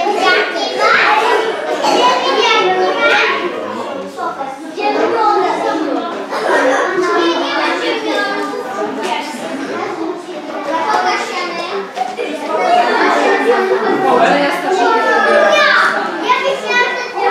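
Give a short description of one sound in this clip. Young children chatter and shout excitedly nearby in an echoing room.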